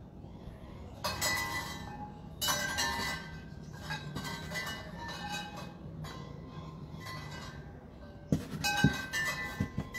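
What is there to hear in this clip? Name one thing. A plastic bowl scrapes and knocks against a plastic tray.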